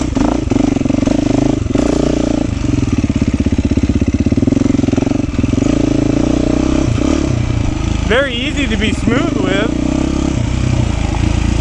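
A dirt bike engine revs and putters up and down close by.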